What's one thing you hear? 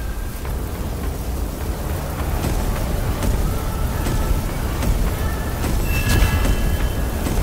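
Magical bursts crackle and explode in quick pops.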